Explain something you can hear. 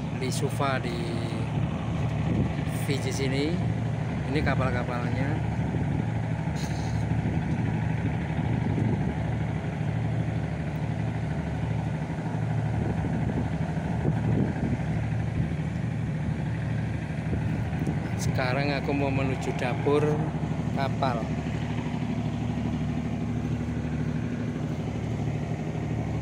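A boat engine hums steadily nearby.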